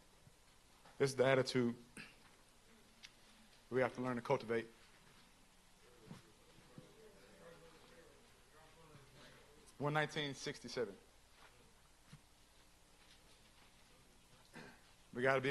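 A young man reads aloud through a microphone in a room with some echo, in short bursts with pauses.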